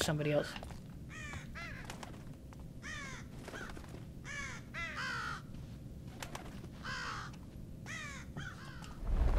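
A young man talks quietly into a headset microphone.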